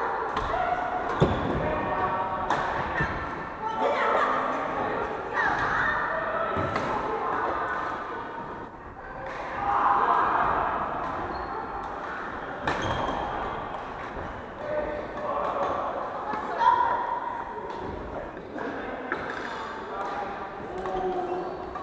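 Players' shoes squeak on the wooden floor.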